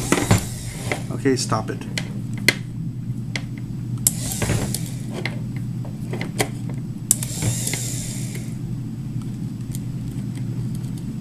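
Wires click and scrape against a small circuit board as fingers handle them.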